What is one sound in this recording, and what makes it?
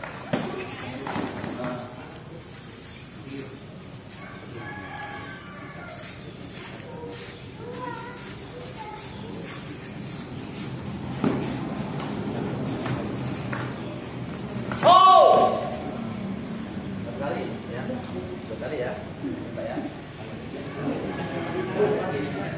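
Bare feet thump and shuffle on a padded mat.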